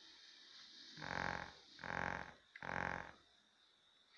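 Short electronic game beeps play through a television speaker.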